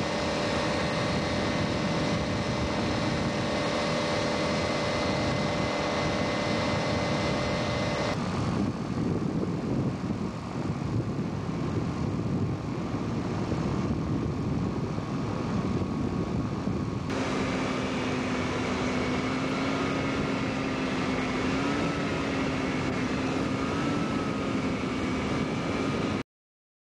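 An aircraft engine drones steadily close by.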